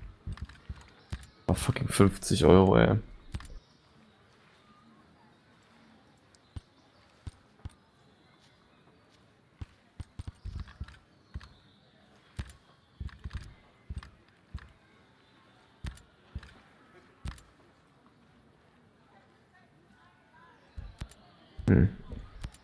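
Short interface clicks and ticks sound as a menu is browsed.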